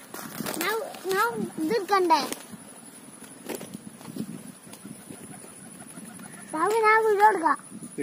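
A pigeon flaps its wings.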